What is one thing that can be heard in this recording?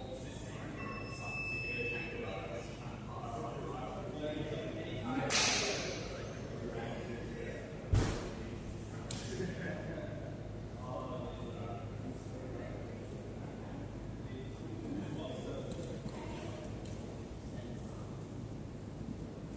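Several adults talk in the background of a large echoing hall.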